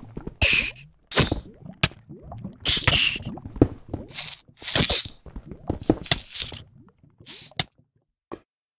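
A creature grunts and squeals as it is struck again and again.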